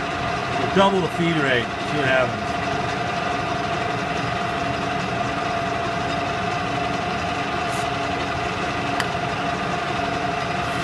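A metal lathe hums steadily.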